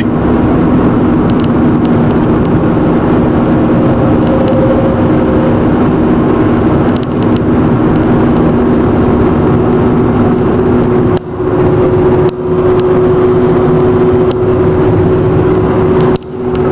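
Road noise and engine hum fill the inside of a car driving fast on a highway.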